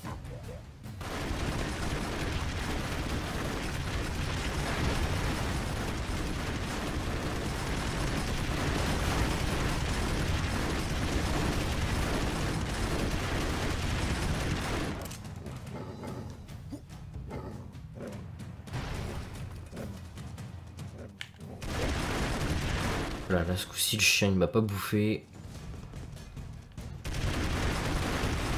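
Rapid retro video game gunfire rattles and pops.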